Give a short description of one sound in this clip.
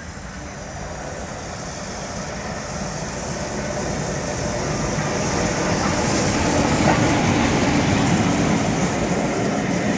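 A steam locomotive approaches, its exhaust chuffing hard.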